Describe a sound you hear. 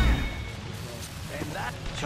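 An explosion bursts with a crackle of sparks.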